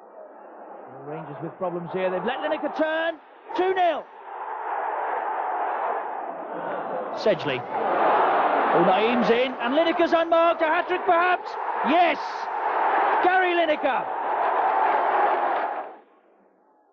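A large crowd roars and cheers loudly in a stadium.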